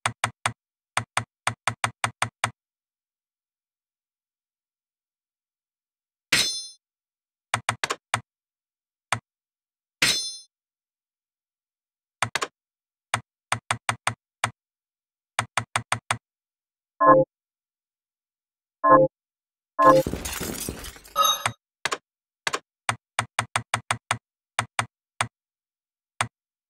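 Short electronic blips tick as a menu cursor moves.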